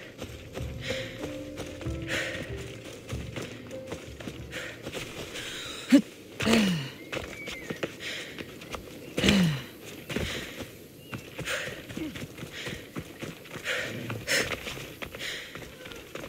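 Footsteps rustle quickly through dry grass and over dirt.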